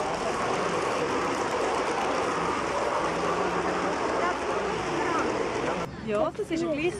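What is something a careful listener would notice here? A model train rolls past on metal rails with a rumbling clatter.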